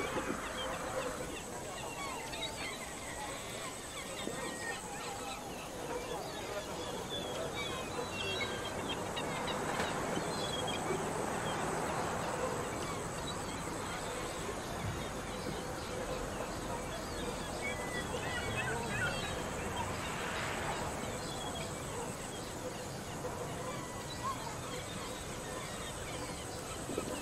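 A glass jar rolls and rattles along a hard ledge.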